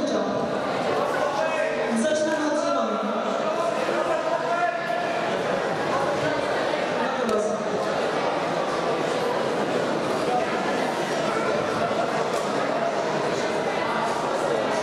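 Young people talk and call out in a large echoing hall.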